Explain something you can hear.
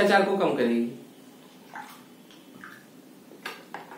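A young man gulps a drink from a bottle.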